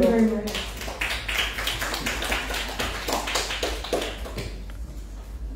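A small audience claps their hands.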